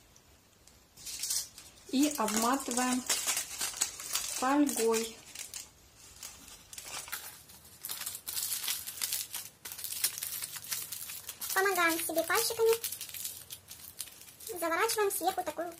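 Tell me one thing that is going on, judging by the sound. Aluminium foil crinkles and rustles as it is folded and wrapped tightly.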